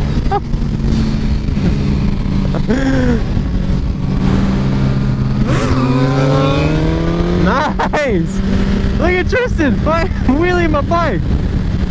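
Another motorcycle engine revs and whines nearby.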